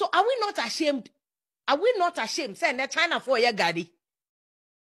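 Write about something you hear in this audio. A woman speaks forcefully and with animation into a microphone.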